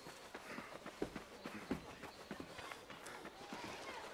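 Footsteps run on sand.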